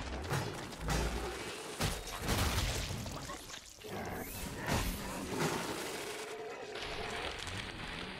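Monsters screech and growl.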